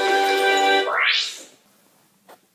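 A video game car engine roars and then sweeps upward.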